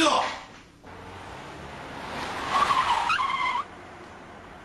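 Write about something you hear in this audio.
A car engine approaches and stops nearby.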